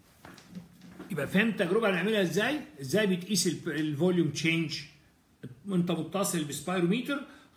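An elderly man speaks with animation close to a phone's microphone.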